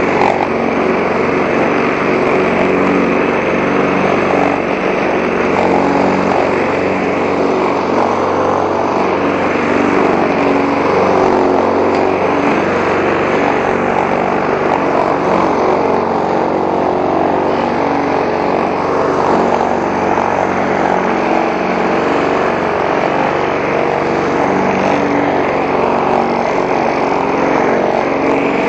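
A petrol lawn mower engine drones loudly and steadily close by.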